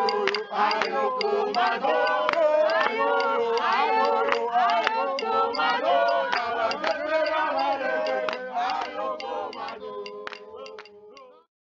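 Young women sing and chant loudly close by.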